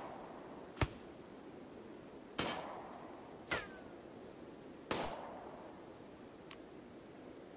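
Short interface clicks and whooshes sound a few times.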